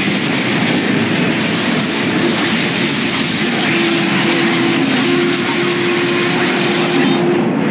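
Spell blasts and clashing weapons crackle and boom in a fierce game battle.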